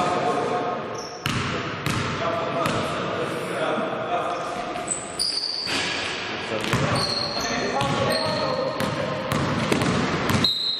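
Sneakers squeak sharply on a hard floor in an echoing hall.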